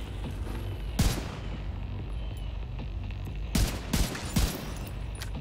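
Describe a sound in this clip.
Gunshots ring out in single loud cracks.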